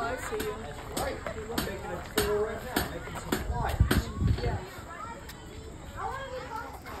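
A man talks to a small group close by.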